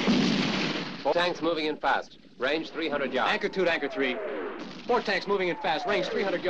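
A man speaks urgently into a field radio handset.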